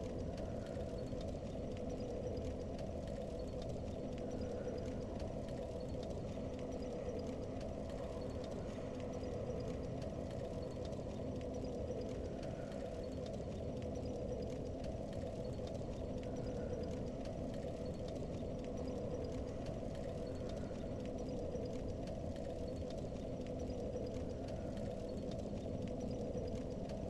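A small fire crackles and burns steadily.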